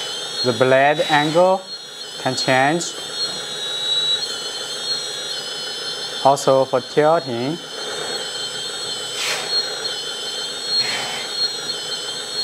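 An electric motor in a toy bulldozer whines steadily.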